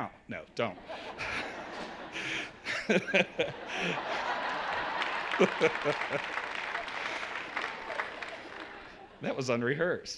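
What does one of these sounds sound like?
An audience laughs and murmurs in a large hall.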